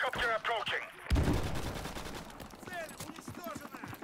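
A rifle fires a short burst of gunshots.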